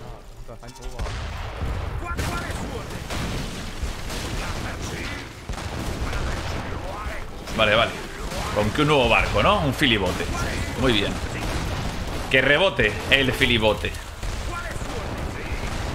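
Cannons fire in rapid booms.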